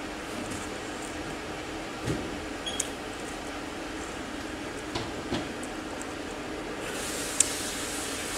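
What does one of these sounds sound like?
A woman chews food noisily close to a microphone.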